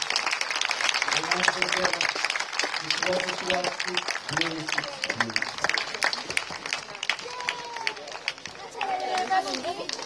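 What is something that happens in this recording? A crowd applauds and cheers loudly outdoors.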